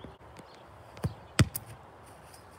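A soccer ball is kicked with a thud.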